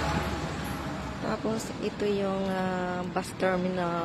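A bus engine idles nearby.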